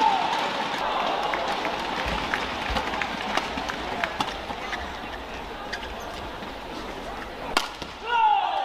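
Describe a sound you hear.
Rackets smack a shuttlecock back and forth in a fast rally.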